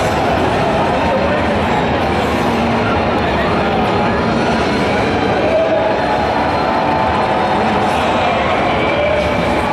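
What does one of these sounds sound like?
Gunfire and game effects play from a loudspeaker.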